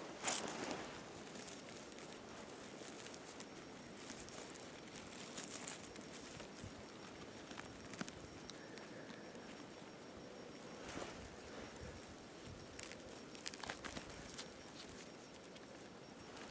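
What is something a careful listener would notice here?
A hand rustles through dry pine needles.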